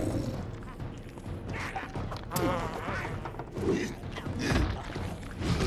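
A huge creature groans and roars deeply.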